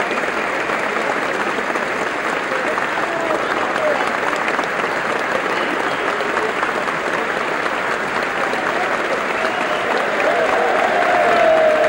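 Voices in a crowd cheer and shout.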